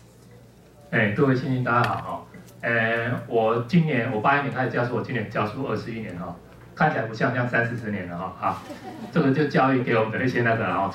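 A man speaks steadily into a microphone, heard over loudspeakers in a large room.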